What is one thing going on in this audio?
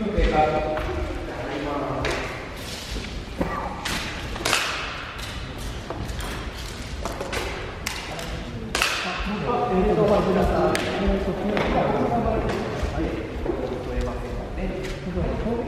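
Men talk nearby in a large echoing hall.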